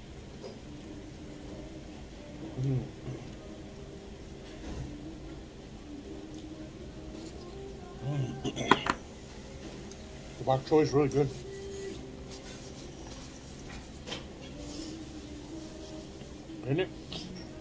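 A man chews and slurps food close by.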